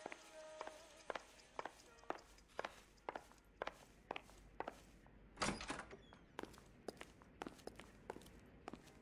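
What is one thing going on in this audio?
Footsteps of hard shoes walk steadily on a wooden floor.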